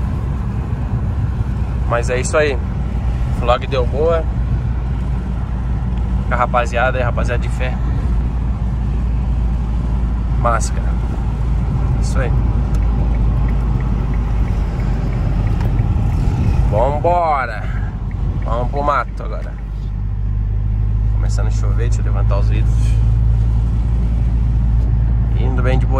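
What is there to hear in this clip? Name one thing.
A car engine hums steadily while driving on a road.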